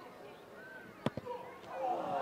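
A boot thumps a rugby ball on a place kick.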